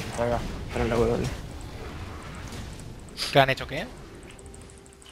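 Magic spells burst and crackle during a fight.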